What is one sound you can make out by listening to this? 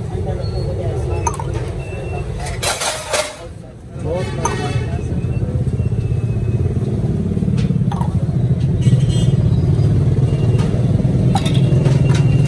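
A metal ladle clinks against steel plates.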